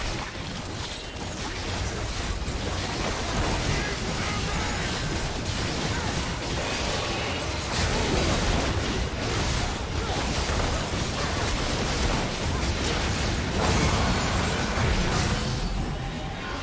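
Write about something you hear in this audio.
Magic spells crackle and blast in a frantic fight.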